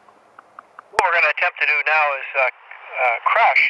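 A middle-aged man speaks close by, calmly, outdoors.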